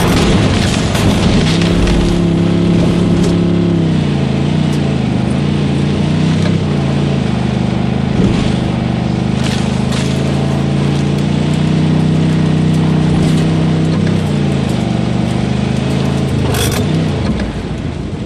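A car engine hums steadily and changes pitch as the car drives.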